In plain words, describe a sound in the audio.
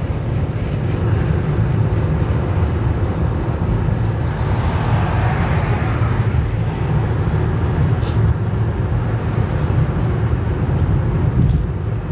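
A car engine drones steadily from inside the car.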